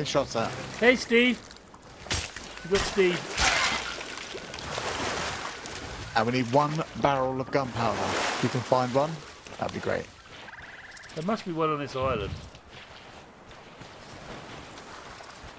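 Waves lap gently against a sandy shore.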